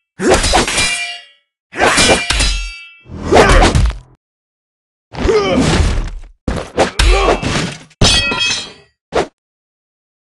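Swords swing and clash in quick bursts.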